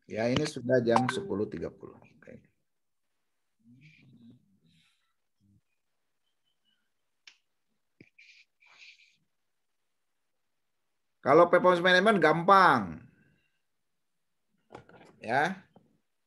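A man speaks through an online call, with pauses.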